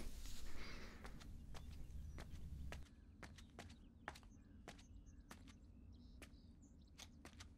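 Quick footsteps tap down stairs and across a hard floor.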